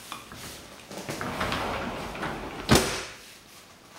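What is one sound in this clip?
A door slides open and knocks to a stop.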